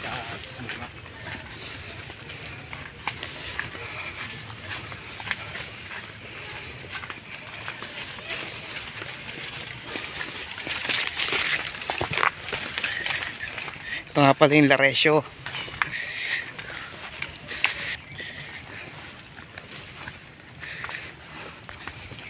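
Footsteps crunch through dry leaves and undergrowth.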